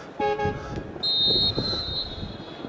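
A whistle blows a sharp blast outdoors.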